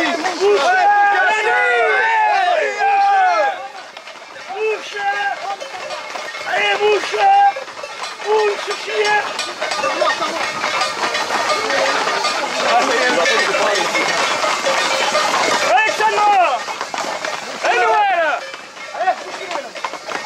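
Hooves clatter on a paved road.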